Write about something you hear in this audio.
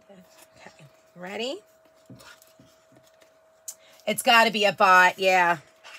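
Stiff paper rustles and creases as hands fold it.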